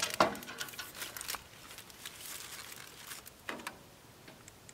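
A man scrapes and clatters metal at a grill.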